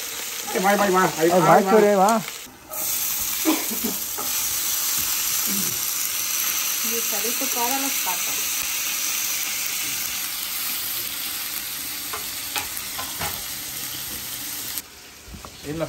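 Food sizzles and crackles in a hot frying pan.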